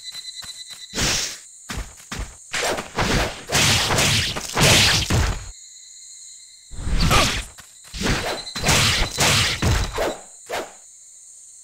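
Swords swing and clash in a fight.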